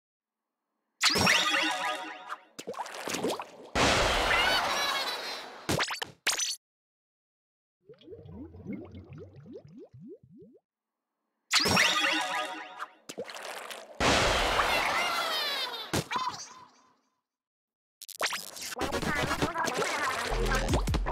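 Wet ink splatters and squelches in loud bursts.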